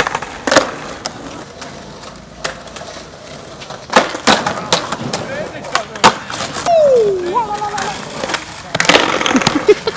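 Skateboard wheels roll and clack on stone pavement outdoors.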